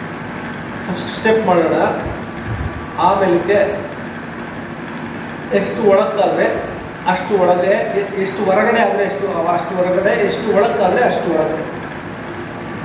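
A man speaks calmly and slowly in an echoing hall.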